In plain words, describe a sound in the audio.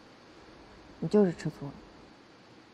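A young woman speaks teasingly, close by.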